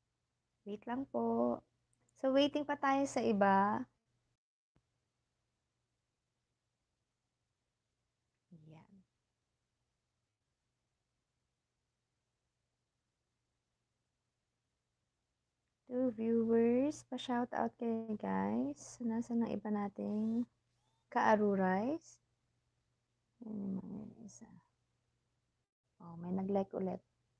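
A woman speaks calmly and close, with pauses.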